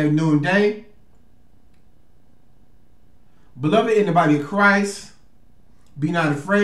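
A man reads out in a deep voice, close to a microphone, with long pauses.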